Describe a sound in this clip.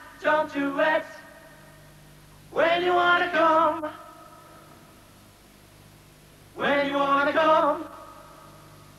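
A young man sings loudly into a microphone in short bursts.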